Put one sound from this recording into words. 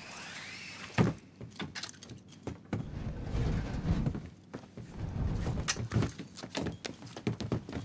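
Footsteps thud and scuff close by.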